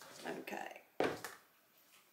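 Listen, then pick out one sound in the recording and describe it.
A plastic bucket is set down on a wooden table with a thud.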